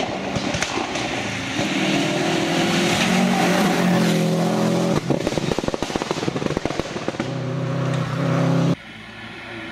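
A rally car engine roars loudly as the car speeds past.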